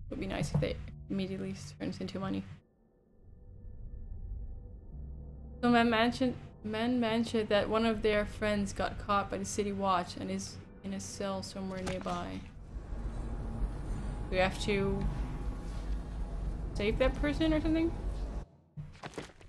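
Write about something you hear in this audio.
A young woman talks with animation into a microphone, close by.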